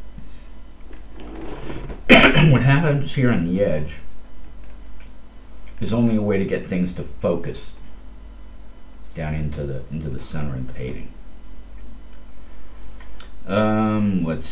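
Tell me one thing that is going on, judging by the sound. An elderly man talks calmly through a headset microphone.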